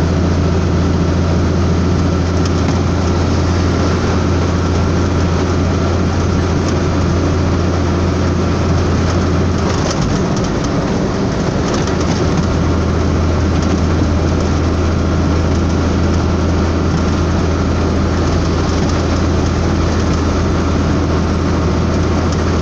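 Tyres roar on the road.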